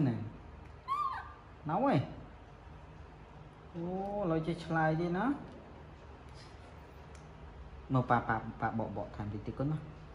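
A woman talks playfully in a high voice close by.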